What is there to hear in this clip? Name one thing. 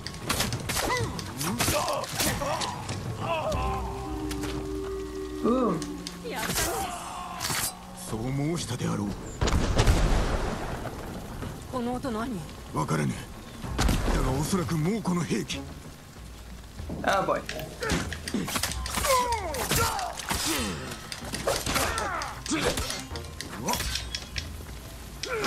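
Swords clash and strike repeatedly.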